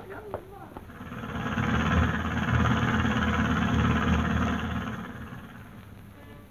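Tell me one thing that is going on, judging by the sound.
A steam train rumbles past with a loud roar.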